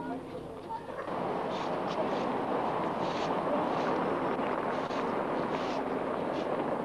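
Brooms sweep across hard ground with scratchy strokes.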